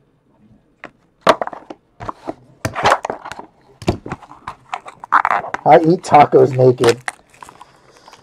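Cardboard packs scrape and tap as they are pulled from a box.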